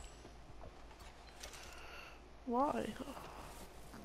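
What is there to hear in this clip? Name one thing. Boots crunch through deep snow.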